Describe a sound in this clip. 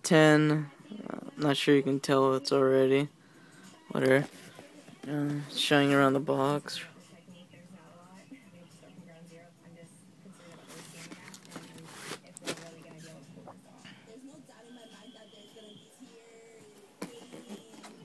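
A cardboard box scrapes and rubs softly as it is handled.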